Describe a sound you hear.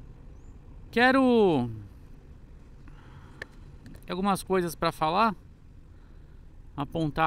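A man speaks close to a helmet microphone with animation.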